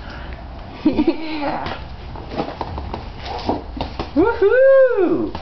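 A small child squeals and babbles excitedly close by.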